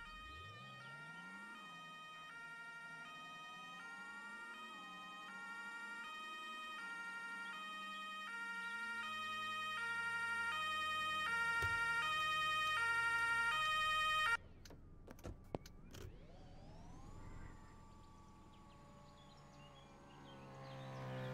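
A car engine hums, rising and falling in pitch as the car speeds up and slows down.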